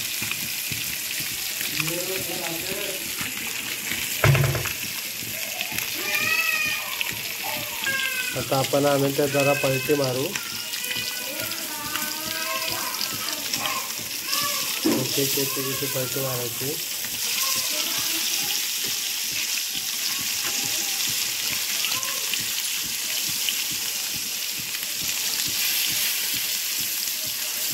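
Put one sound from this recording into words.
Hot oil sizzles and crackles steadily in a frying pan.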